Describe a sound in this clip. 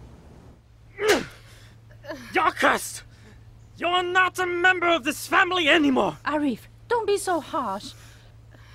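A middle-aged man shouts angrily.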